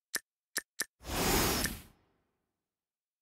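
A magical whoosh sweeps through.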